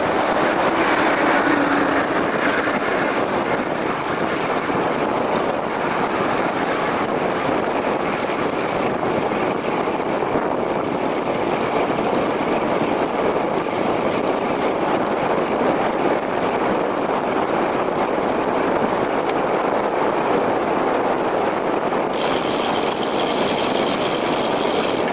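Wind rushes and buffets loudly past a moving bicycle.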